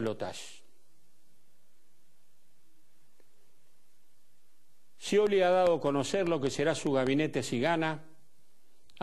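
An older man speaks emphatically into a microphone.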